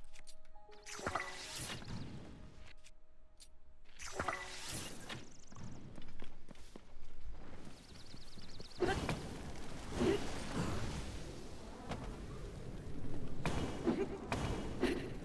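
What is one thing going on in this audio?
Flames crackle and roar as grass and trees burn.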